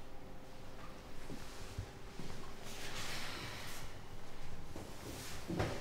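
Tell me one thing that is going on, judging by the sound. Footsteps approach on a hard floor.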